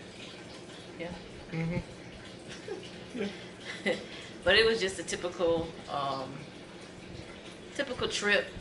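A woman speaks casually close to a microphone.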